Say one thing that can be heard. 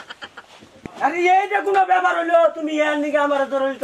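A man speaks loudly and forcefully close by.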